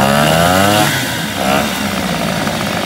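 A small outboard motor revs up and down.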